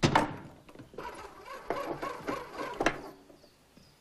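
A gramophone plays a scratchy old record.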